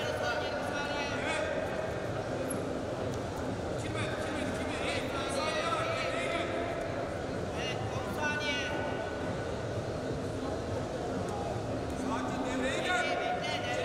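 Shoes squeak on a wrestling mat.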